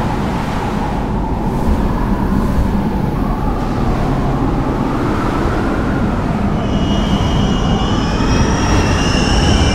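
Wind roars in a powerful storm.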